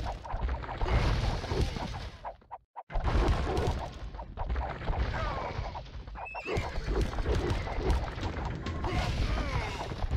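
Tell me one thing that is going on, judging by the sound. Swords clash and soldiers fight in a battle.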